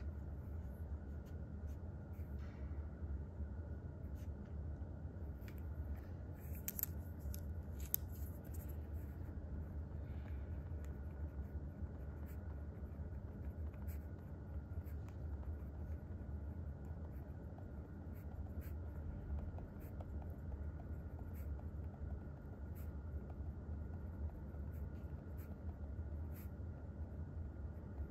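A pen scratches softly across paper.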